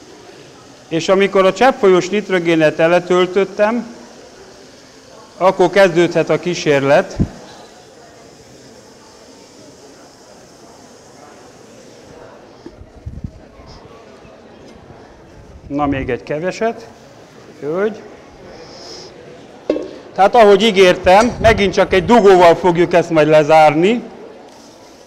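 A middle-aged man speaks with animation through a clip-on microphone.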